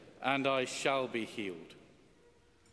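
A man sings out loudly in a large echoing space.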